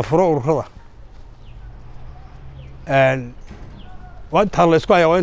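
An elderly man speaks slowly and firmly into a clip-on microphone, pausing between phrases.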